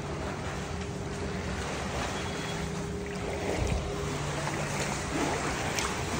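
Floodwater sloshes and splashes as someone wades through it.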